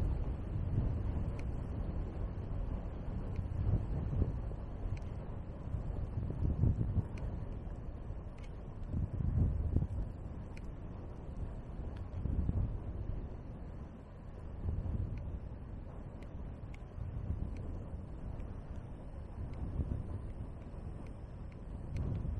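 Wind rumbles and buffets steadily outdoors.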